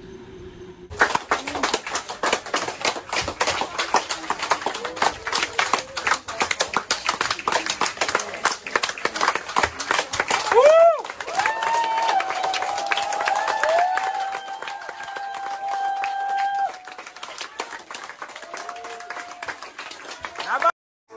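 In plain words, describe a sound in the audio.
A crowd of men and women cheers and shouts.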